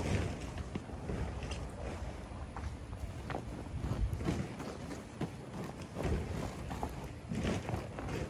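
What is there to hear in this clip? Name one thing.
Heavy vinyl rustles and crinkles as a man handles it.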